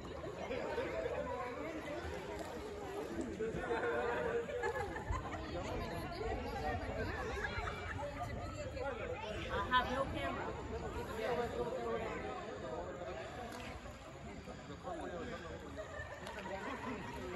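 Water laps and splashes gently close by.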